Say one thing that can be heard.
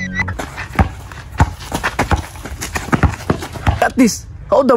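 A basketball bounces on hard dirt ground.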